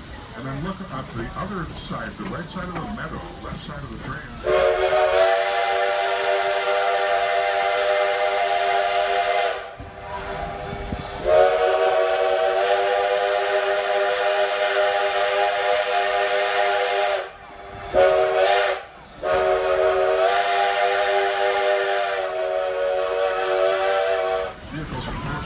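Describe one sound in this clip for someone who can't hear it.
A train rolls along the tracks with wheels clattering.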